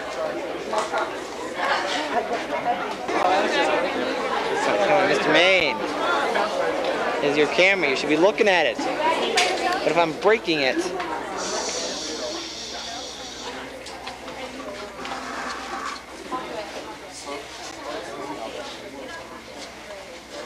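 A crowd of young people chatters and laughs nearby.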